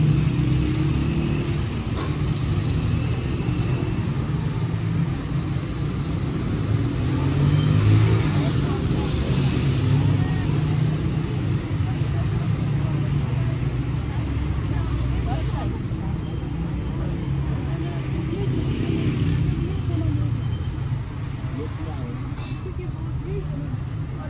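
A low rumble of street traffic hums in the background outdoors.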